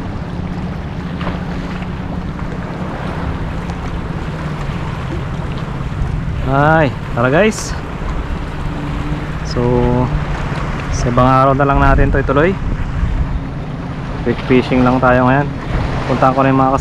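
Small waves lap against rocks nearby.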